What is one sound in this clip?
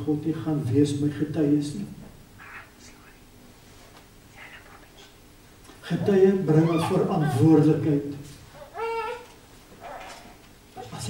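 An elderly man preaches with animation through a microphone, pausing between phrases.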